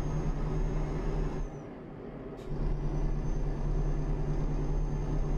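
A truck engine drones steadily, easing off briefly before pulling again.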